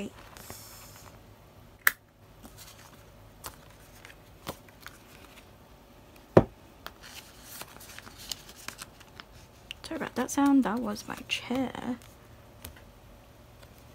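Plastic binder sleeves crinkle and rustle as pages are handled.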